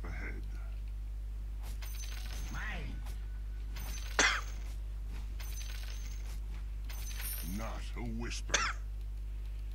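Magic effects whoosh in a video game fight.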